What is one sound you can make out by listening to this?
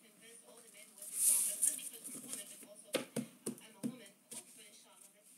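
A stack of playing cards rustles and clicks as it is handled.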